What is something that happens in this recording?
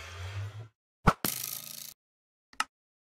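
A bow twangs as an arrow is loosed.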